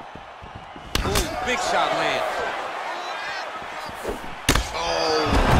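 A heavy punch lands with a sharp thud.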